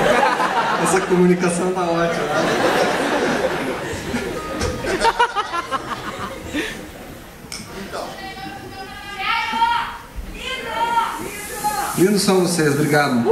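A bass guitar plays a low line through an amplifier.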